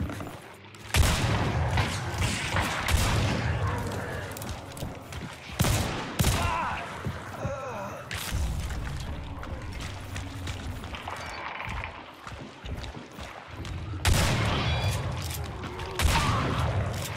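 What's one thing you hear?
A shotgun fires loud, booming blasts with a ringing echo.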